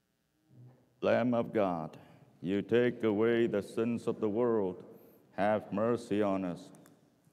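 A man prays aloud in a large echoing church.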